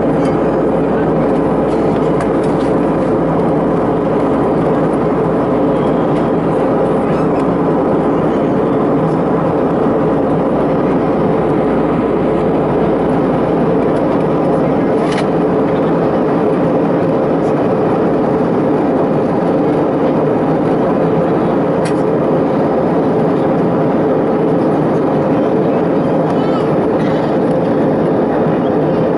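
A jet engine roars steadily in the cabin of a plane in flight.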